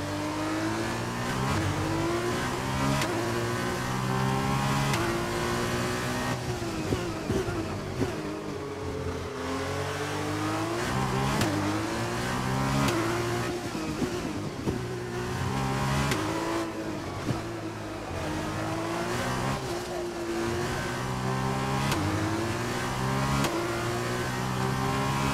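A racing car engine screams, rising in pitch through each gear and dropping sharply as it shifts down.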